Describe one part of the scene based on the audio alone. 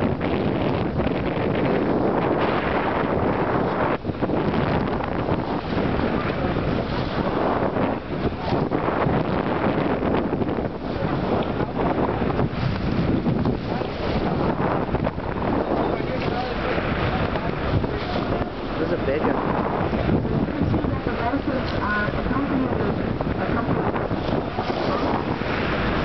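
Water rushes and splashes loudly past a moving boat's hull.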